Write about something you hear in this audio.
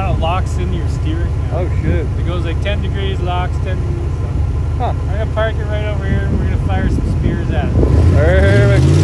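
A young man talks cheerfully, close by.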